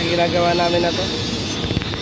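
An arc welder crackles and hisses in the distance.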